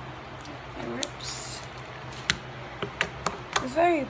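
Slime squelches and pops between fingers.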